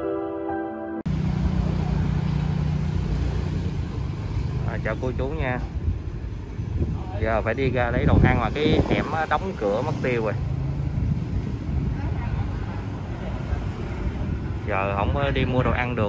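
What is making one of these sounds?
A motorbike engine idles with a low steady rumble.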